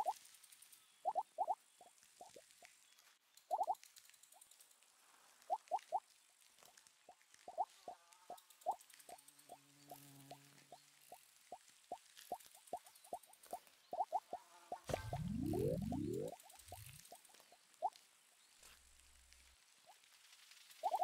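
Short, bright game pops sound again and again as a snake eats pellets.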